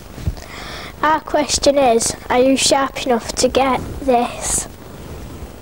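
A young girl speaks calmly and close by.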